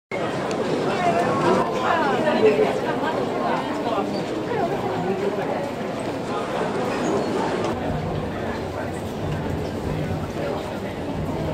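A large crowd murmurs and chatters in a busy echoing hall.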